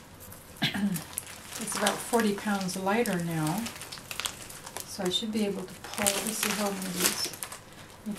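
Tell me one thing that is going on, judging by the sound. Brittle plaster cracks and snaps as it is pulled apart.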